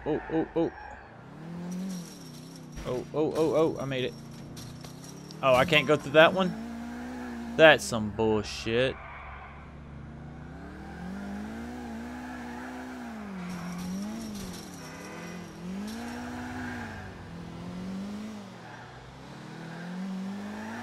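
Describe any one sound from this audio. A car engine hums and revs up and down steadily.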